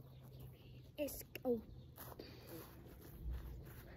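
Footsteps swish through grass close by.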